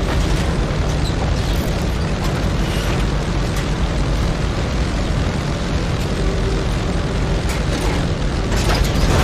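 A heavy vehicle's engine rumbles steadily as it drives.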